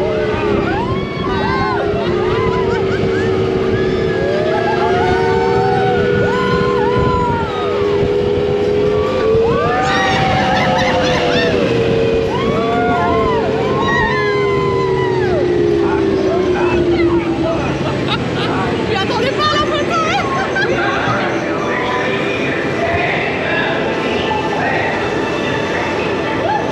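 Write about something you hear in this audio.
A ride vehicle rumbles steadily along a track.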